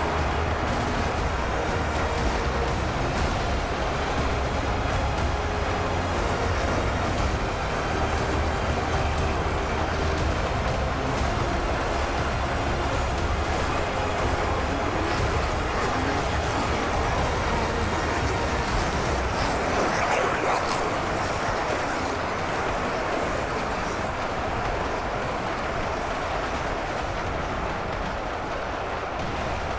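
A huge crowd of soldiers roars and clamours in battle.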